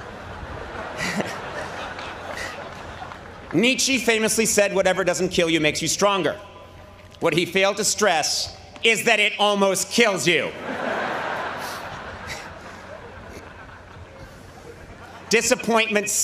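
A large crowd laughs and applauds.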